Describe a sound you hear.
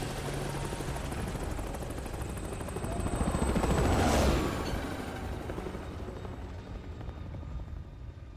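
A helicopter rotor thumps and roars steadily.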